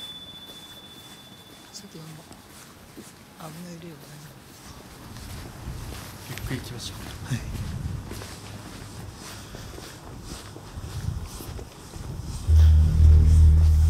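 Footsteps tread on pavement outdoors.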